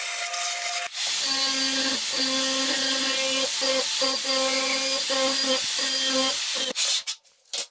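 A sanding drum grinds against metal with a high, harsh whir.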